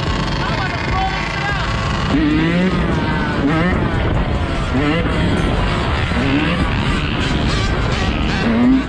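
Wind rushes loudly past a moving rider.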